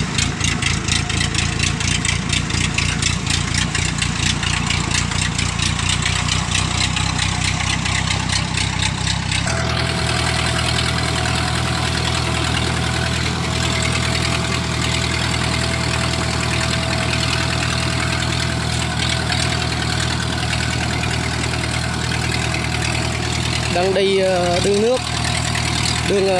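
A tracked machine's engine rumbles steadily close by.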